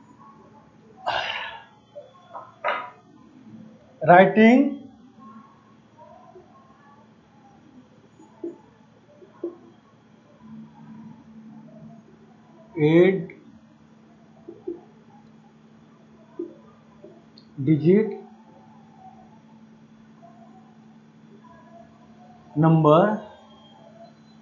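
A man speaks in short bursts nearby.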